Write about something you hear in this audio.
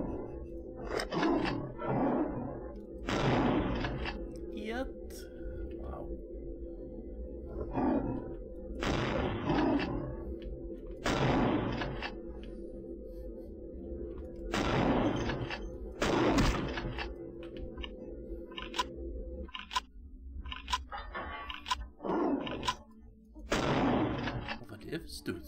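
Shotgun blasts boom in short bursts.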